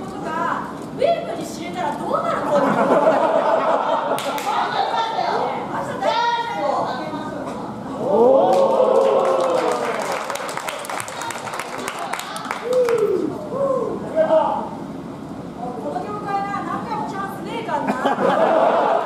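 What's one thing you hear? A crowd cheers and chants.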